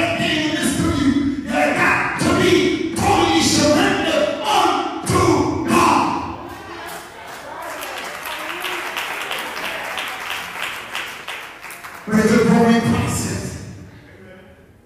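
A man preaches loudly and with fervour through a microphone in an echoing hall.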